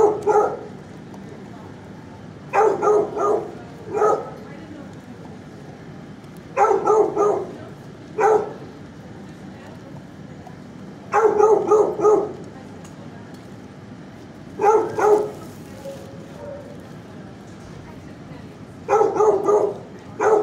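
A dog barks in short bursts nearby.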